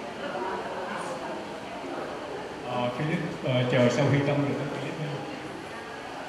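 A man talks into a microphone over a loudspeaker.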